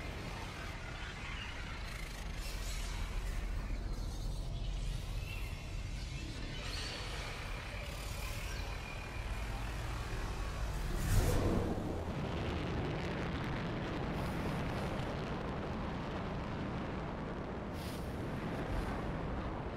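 Jet thrusters roar and rush as an armoured suit flies.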